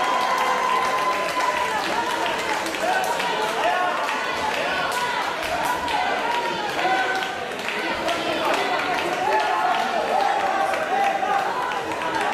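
A crowd of spectators shouts and cheers in a large hall.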